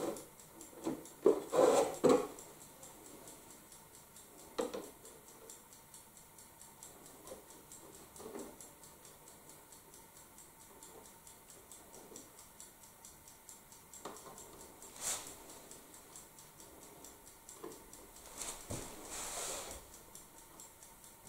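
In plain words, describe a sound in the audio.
A man handles and knocks wooden parts with light thuds and taps.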